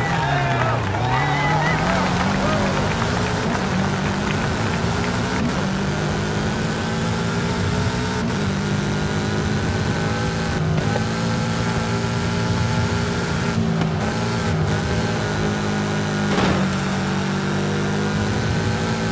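A car engine revs hard and climbs in pitch as the car speeds up.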